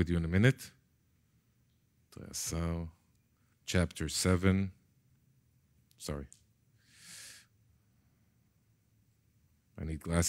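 A middle-aged man reads aloud slowly into a microphone, with long pauses.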